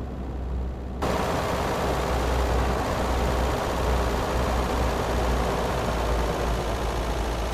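A car engine and tyres roar louder on the road from outside.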